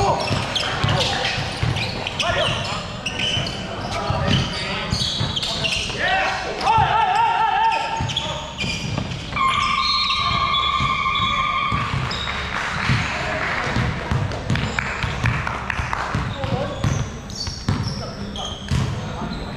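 Young men call out to one another across the gym.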